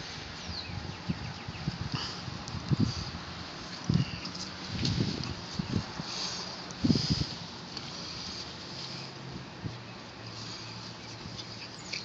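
Small dogs scuffle and play in rustling grass.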